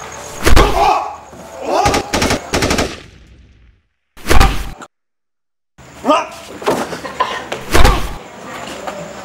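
A man shouts angrily close by.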